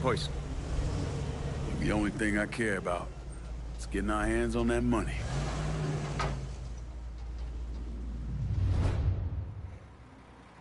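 A truck engine rumbles low and steady, then fades out.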